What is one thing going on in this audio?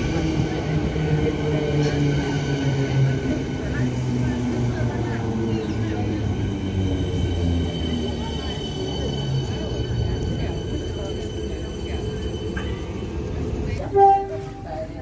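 An electric train rolls in close by, its motors whining lower as it slows to a stop.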